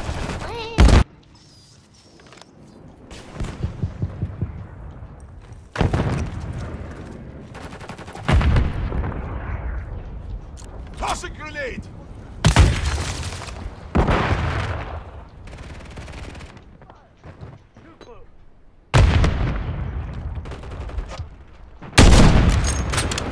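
Loud gunshots boom one at a time, each echoing away.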